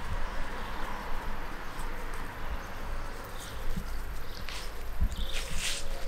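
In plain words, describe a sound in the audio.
A dog trots softly through grass.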